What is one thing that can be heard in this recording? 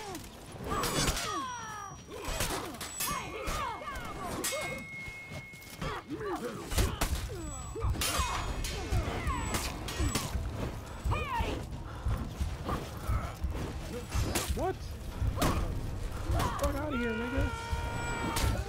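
Swords clash and ring in quick, repeated blows.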